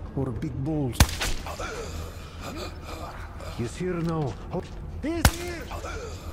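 A gun fires sharp single shots.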